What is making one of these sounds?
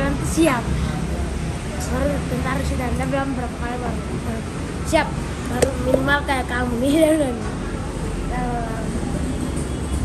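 A boy talks and laughs with animation close by.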